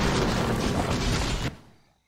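A game lightning spell crackles.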